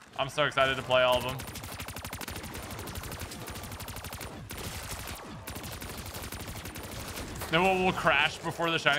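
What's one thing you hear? A young man talks loudly and excitedly into a microphone.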